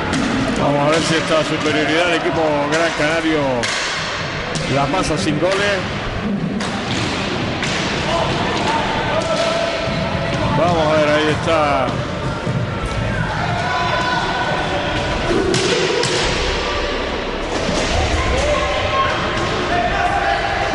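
Roller skates rumble across a wooden floor.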